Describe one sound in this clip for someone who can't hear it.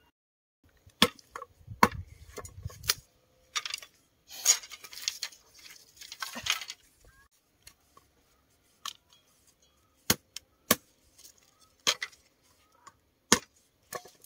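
A woman splits and chops bamboo with sharp knocks.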